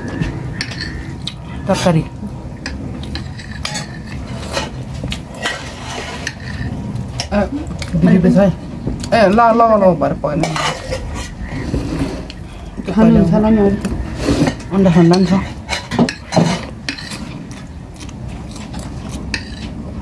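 Bare fingers squish and mix rice on a plate.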